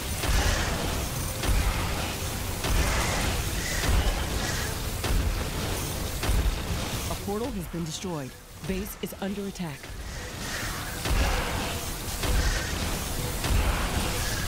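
Explosions boom and rumble in quick bursts.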